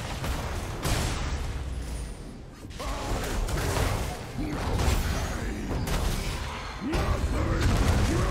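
Game spells and weapon hits burst and crash in quick succession during a fight.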